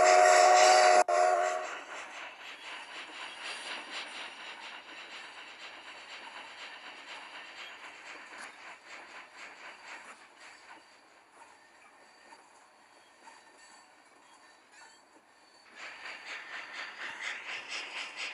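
A steam locomotive chugs along with rapid, rhythmic puffs.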